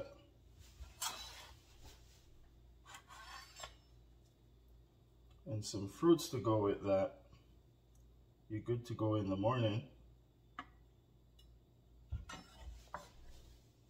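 A knife scrapes and taps on a plate.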